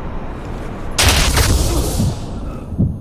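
A loud burst of gunfire rings out.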